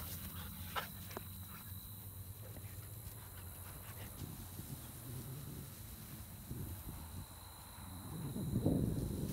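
A dog runs through grass, paws rustling.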